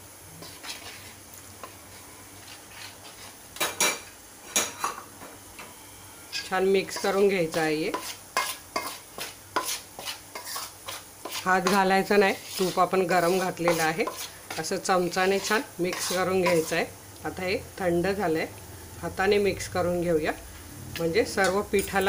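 A metal spoon clicks and scrapes against a metal bowl.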